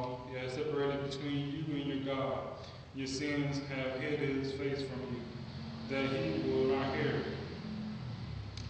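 A man reads aloud calmly into a microphone in an echoing room.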